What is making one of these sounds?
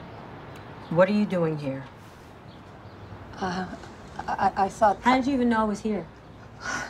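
A young woman speaks nearby in a surprised, hesitant voice.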